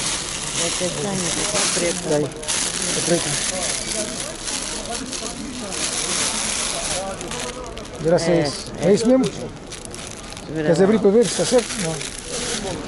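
Plastic packaging crinkles and rustles as hands handle it.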